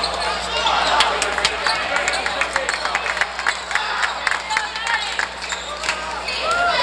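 A crowd cheers and chatters loudly in a large echoing gym.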